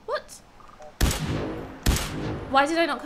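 A gun fires loud shots.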